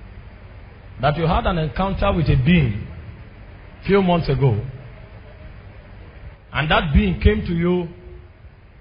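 A man preaches loudly and with passion into a microphone, in bursts.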